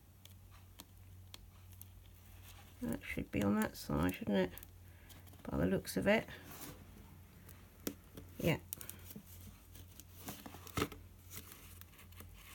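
Paper crinkles and rustles under hands.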